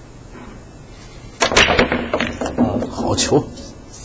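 Billiard balls crack and clatter as a cue ball breaks the rack.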